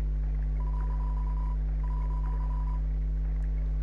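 Quick electronic blips chirp in a rapid run, like game dialogue being typed out.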